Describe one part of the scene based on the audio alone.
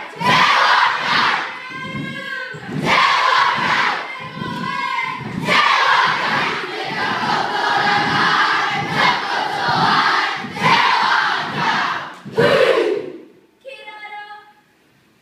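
A large crowd of children chants and shouts loudly in rhythm in an echoing hall.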